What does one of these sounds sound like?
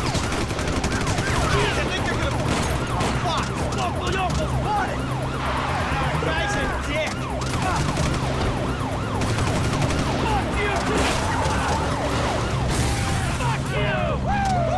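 Tyres squeal on the slippery road.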